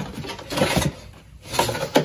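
A cardboard box of crackers rattles as it is shaken.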